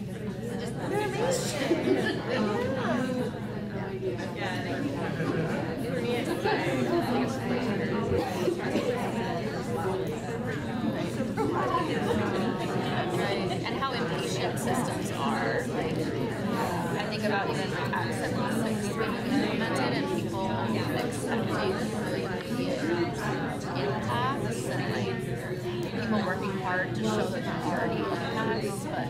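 Many adults talk at once in a large room, a steady hubbub of voices.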